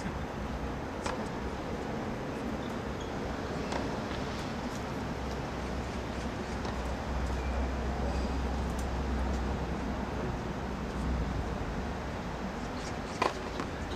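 A tennis racket strikes a ball with sharp pops now and then.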